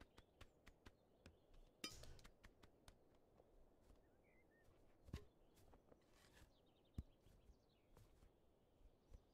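A goose's feet patter as it waddles along.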